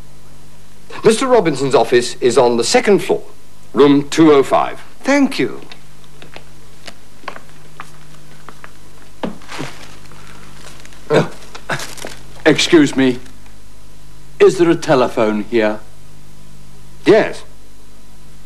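A second middle-aged man answers calmly nearby.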